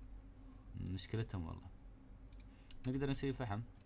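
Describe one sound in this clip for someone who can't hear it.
A soft game click sounds as a menu opens.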